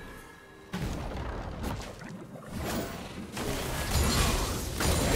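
Magic blasts and weapon hits crash and whoosh.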